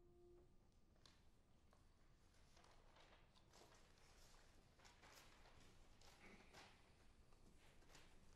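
Sheets of paper rustle and crackle as pages are handled close by.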